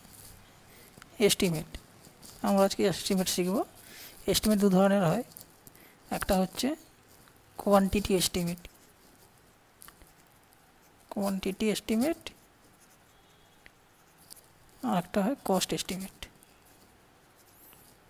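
A felt pen scratches softly on paper.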